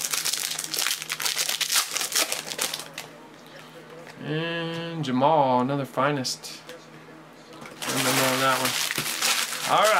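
Foil card wrappers crinkle and rustle as they are handled.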